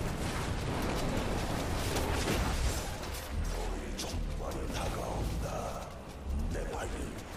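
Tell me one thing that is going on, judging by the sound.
Game spells crackle and boom in rapid bursts.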